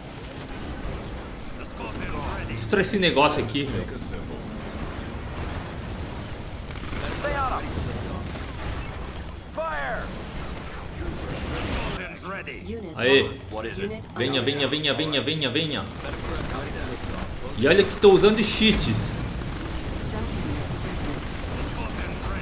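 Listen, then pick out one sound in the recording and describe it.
Laser beams zap and crackle in a battle.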